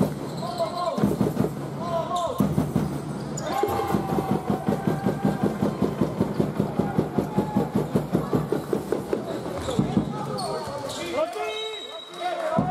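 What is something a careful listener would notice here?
A crowd of spectators cheers and chants in the stands.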